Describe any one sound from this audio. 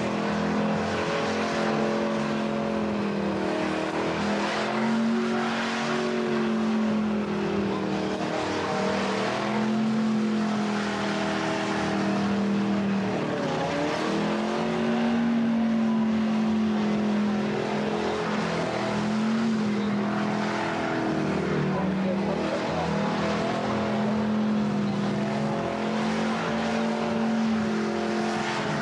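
A car engine roars and revs hard, close by.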